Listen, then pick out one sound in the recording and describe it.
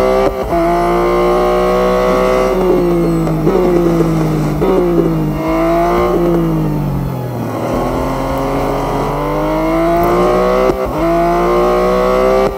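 A race car engine roars, its pitch rising and falling as it speeds up and slows down through the gears.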